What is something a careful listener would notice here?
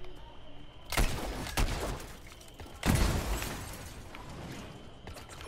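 A loud, wet explosion bursts nearby.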